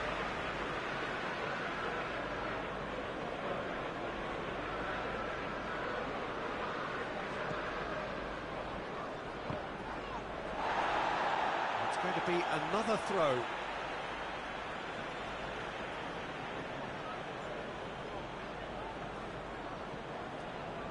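A stadium crowd murmurs steadily, swelling into a cheer for a few seconds.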